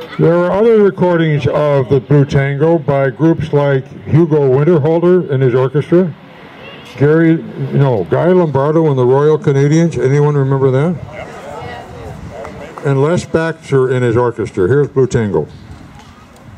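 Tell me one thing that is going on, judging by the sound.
An elderly man speaks with animation into a microphone, heard loud through a loudspeaker outdoors.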